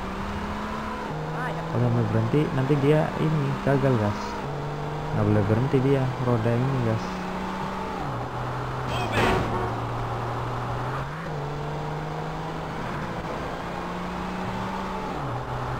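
A car engine hums steadily as a car drives along a road.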